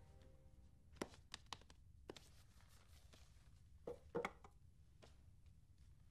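Paper rustles as a rolled scroll is handled.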